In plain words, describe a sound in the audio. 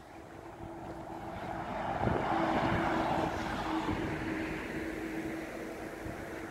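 A bus drives past on a nearby road.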